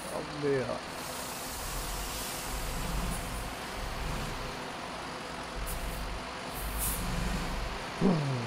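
Water splashes as a bus drives into a lake.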